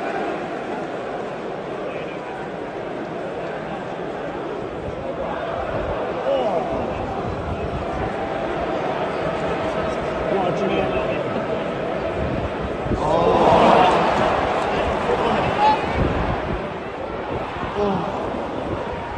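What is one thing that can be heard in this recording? A large stadium crowd murmurs and chants steadily in the open air.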